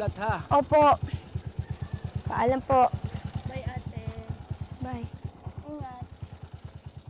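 A motorcycle engine idles nearby.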